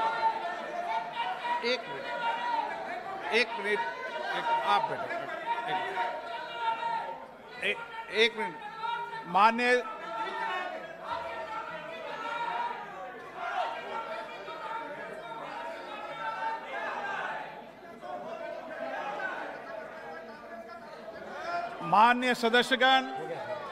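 A middle-aged man speaks firmly into a microphone in a large echoing hall.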